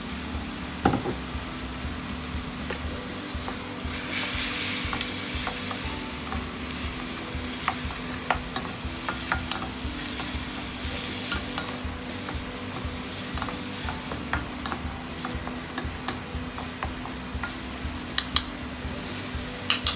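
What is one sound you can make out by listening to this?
Minced meat sizzles in a hot pan.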